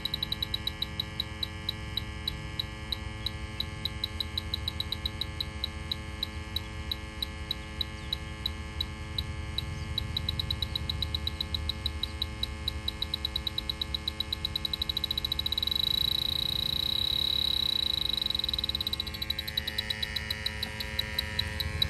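An electronic leak detector beeps rapidly, speeding up into a steady tone before breaking back into beeps.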